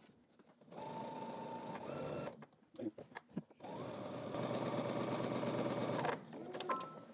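A sewing machine whirs as it stitches in short bursts.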